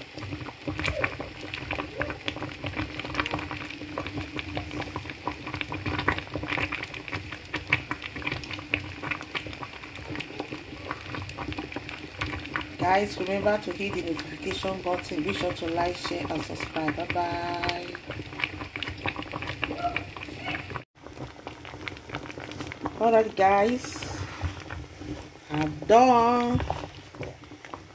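A wooden spoon scrapes and stirs in a pot.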